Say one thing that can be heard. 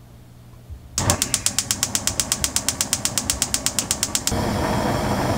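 A gas stove igniter ticks rapidly.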